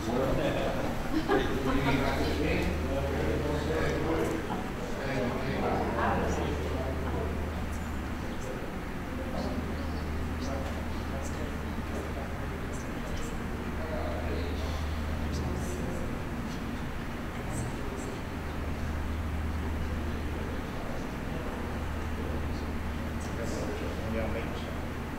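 Two men talk quietly, heard from across a room.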